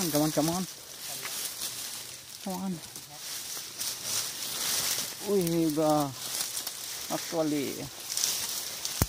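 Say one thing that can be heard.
Dry leaves and twigs rustle and crackle underfoot.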